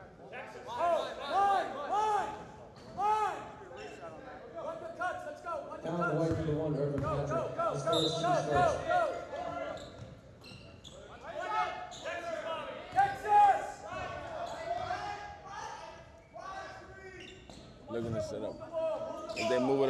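Sneakers squeak sharply on a wooden court.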